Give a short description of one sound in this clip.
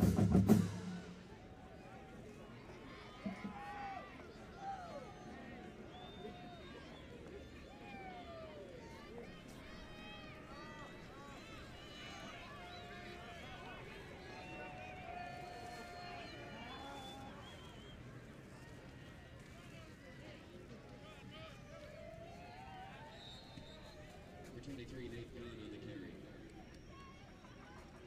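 A crowd cheers outdoors in the distance.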